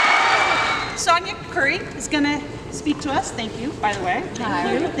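A middle-aged woman speaks warmly up close.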